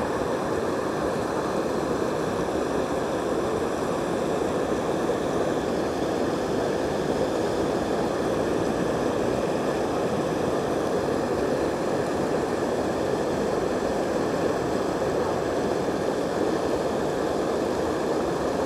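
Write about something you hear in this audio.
Floodwater rushes and churns steadily over a low bank.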